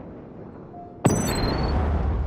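A grenade launcher fires with a sharp thump.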